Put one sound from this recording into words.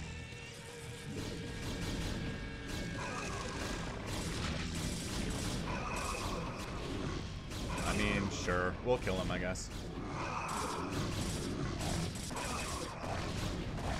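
Creatures screech and clash in a battle with electronic effects.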